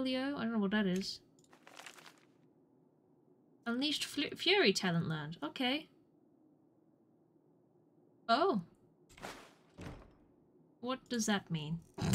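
A young woman talks with animation into a microphone, in bursts with pauses.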